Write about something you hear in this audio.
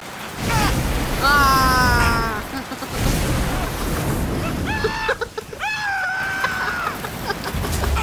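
A man screams in pain close by.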